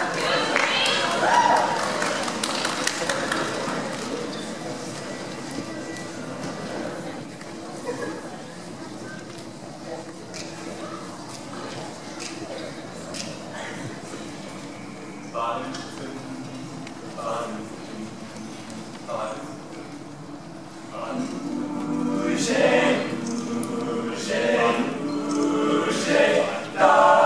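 A group of teenage boys sings a cappella through microphones.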